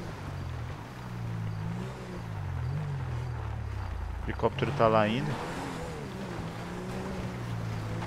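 A car engine hums steadily, rising and falling in pitch.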